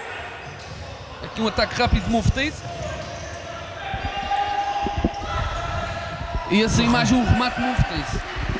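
A ball is kicked with dull thumps in an echoing hall.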